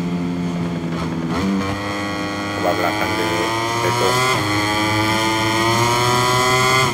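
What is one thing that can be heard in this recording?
A motorcycle engine whines at high revs, its pitch rising as it speeds up between gear shifts.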